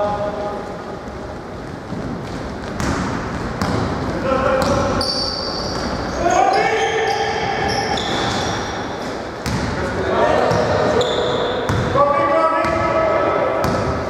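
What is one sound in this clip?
A basketball bounces and thuds on the floor.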